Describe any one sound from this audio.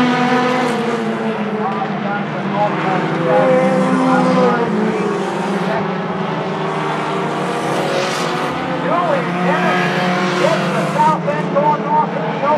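Race car engines rev up and down as drivers shift gears.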